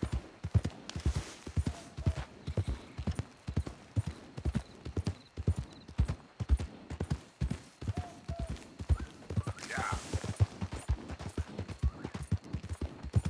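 Horse hooves thud steadily on a soft dirt trail.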